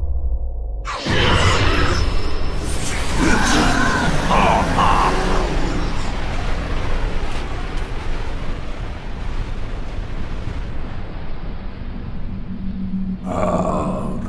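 A deep, roaring blast bursts out suddenly and slowly dies away.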